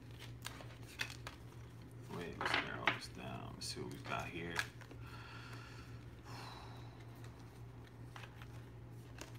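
Light clicks and taps sound from hands handling small objects.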